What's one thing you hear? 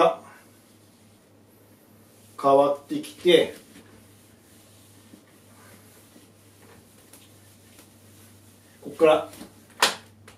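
An eraser wipes across a whiteboard.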